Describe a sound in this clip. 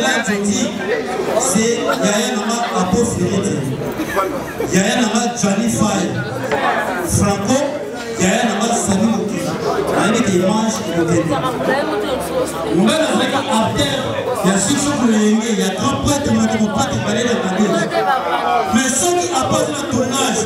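A young man sings through a microphone over loudspeakers.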